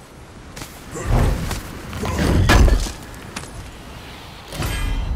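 A heavy chest lid creaks and bangs open.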